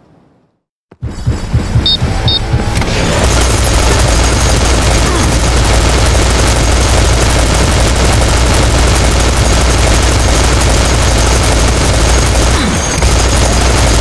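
Guns fire rapidly in a loud, continuous clatter of shots and blasts.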